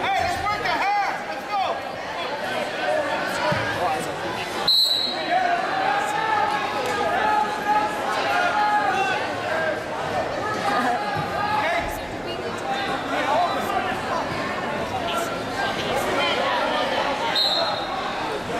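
A crowd cheers and shouts throughout a large echoing gym.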